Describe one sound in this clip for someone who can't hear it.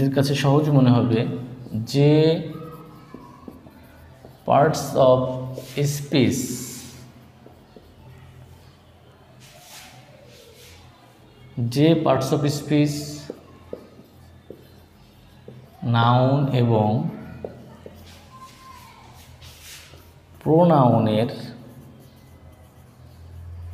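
A marker squeaks on a whiteboard.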